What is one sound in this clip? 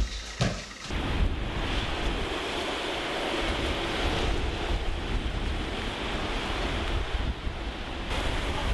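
Small waves wash gently onto a sandy beach.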